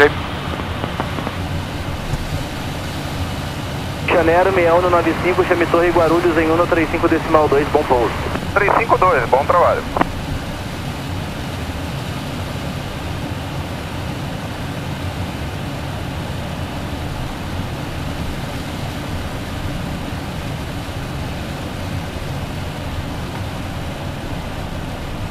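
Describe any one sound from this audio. A steady low roar of aircraft engines and rushing air.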